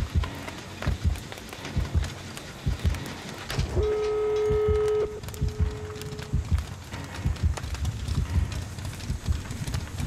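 Flames crackle and roar close by.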